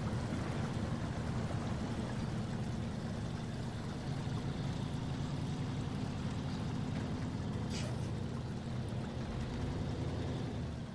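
A truck engine rumbles steadily as the truck drives slowly.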